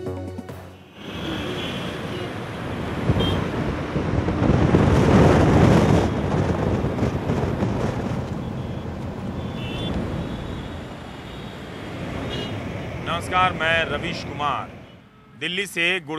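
Traffic rumbles steadily along a busy road.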